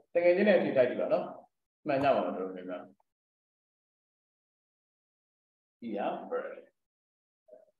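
A young man speaks calmly into a microphone, heard as over an online call, with pauses.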